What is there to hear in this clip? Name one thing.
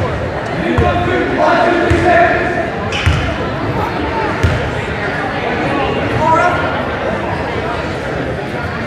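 Spectators call out and chatter in an echoing gym.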